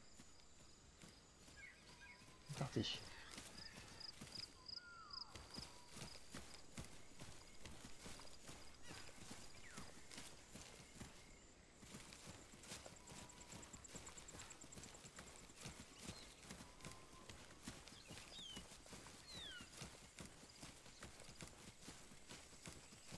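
Footsteps crunch steadily through dry leaves and undergrowth.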